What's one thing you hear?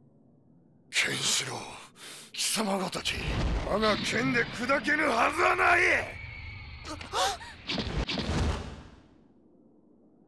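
A man shouts and roars fiercely.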